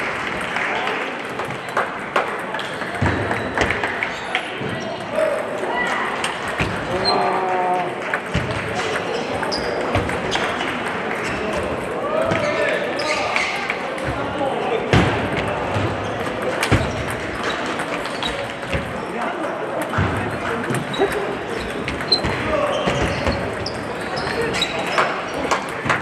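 Players' shoes squeak on the floor.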